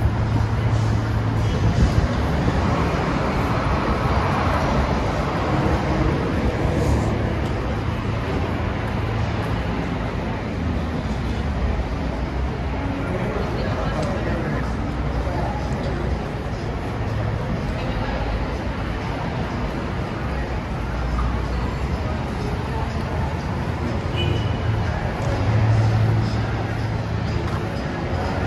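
Footsteps tap on paving stones as people walk by.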